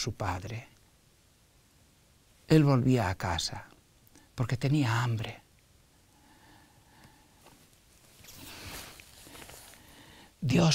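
An elderly man speaks calmly into a microphone, close by, with pauses between phrases.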